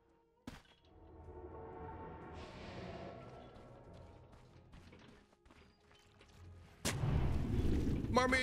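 Game sound effects of clashing and spell blasts play.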